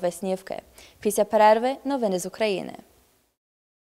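A young woman speaks clearly into a microphone, close by.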